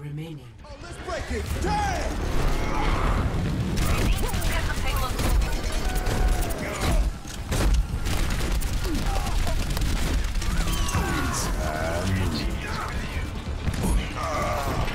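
Gunfire crackles rapidly in a video game.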